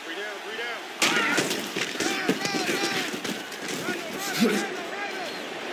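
Football players collide with loud thuds and crashes.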